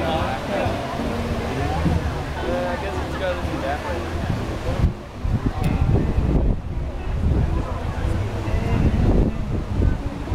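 A crowd of men and women chat nearby outdoors.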